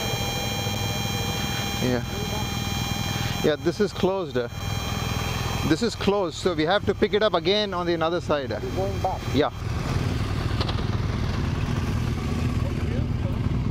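Other motorcycles ride past on gravel.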